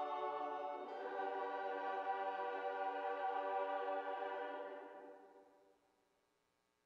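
Strings hold a final chord that fades away.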